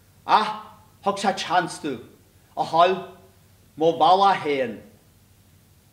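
A middle-aged man shouts out loudly on a stage.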